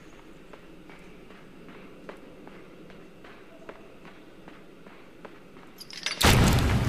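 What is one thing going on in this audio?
Soft footsteps patter quickly on the ground.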